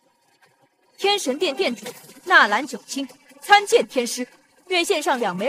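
A young woman speaks clearly and calmly.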